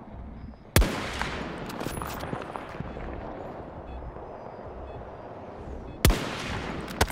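A sniper rifle fires with a sharp crack.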